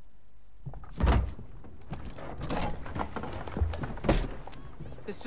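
A man's boots thud as he steps in.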